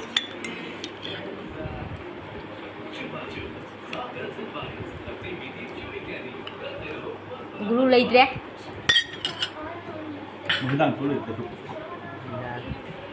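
A metal spoon clinks against a metal bowl.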